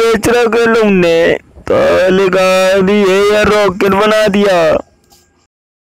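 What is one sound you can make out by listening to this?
A woman sings loudly close by.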